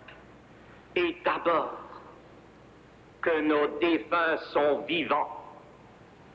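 A man shouts military commands loudly in an echoing hall.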